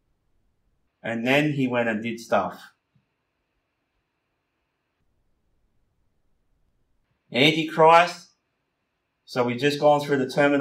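A man speaks calmly into a microphone, lecturing in short phrases with pauses.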